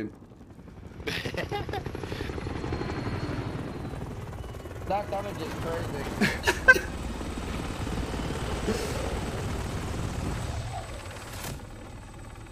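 A helicopter's rotor thuds steadily overhead.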